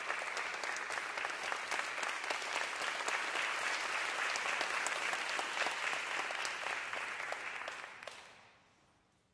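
An audience applauds loudly in a large echoing hall, then the clapping dies away.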